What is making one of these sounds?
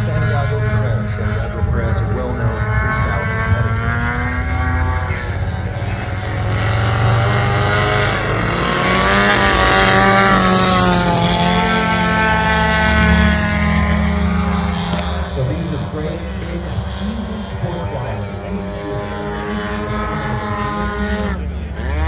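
Small model plane engines whine overhead, rising and falling in pitch.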